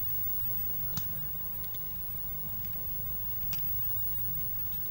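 Handcuffs click shut.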